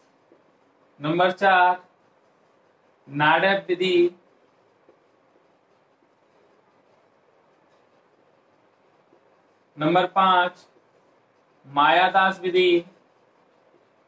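A man speaks in short, calm phrases close by.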